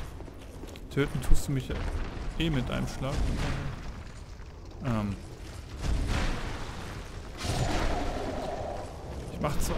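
A sword strikes a stone giant with heavy thuds.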